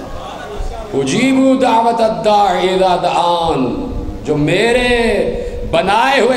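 A man speaks with emotion through a microphone over loudspeakers.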